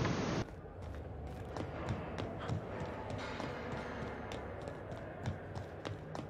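Footsteps tap on a metal floor.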